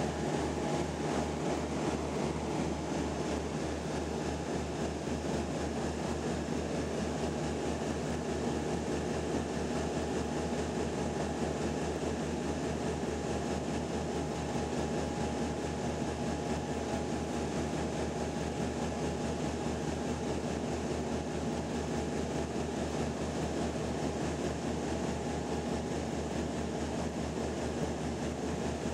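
Air rushes past the aircraft in a steady roar.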